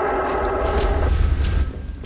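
A shotgun is loaded with clicks of metal.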